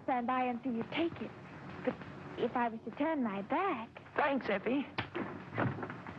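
A young woman speaks with emotion.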